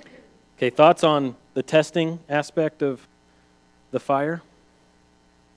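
A man speaks calmly and with pauses to a listening audience.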